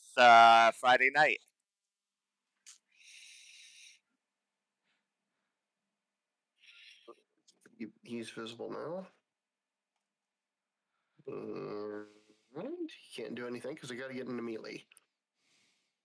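A man talks into a headset microphone in short bursts, calmly and with pauses.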